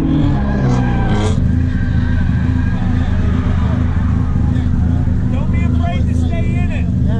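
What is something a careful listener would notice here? A car engine rumbles loudly and steadily up close.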